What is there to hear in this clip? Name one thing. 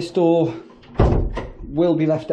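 A door thuds shut close by.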